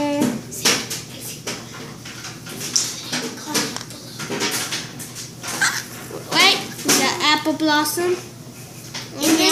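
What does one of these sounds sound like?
A girl talks with animation close by.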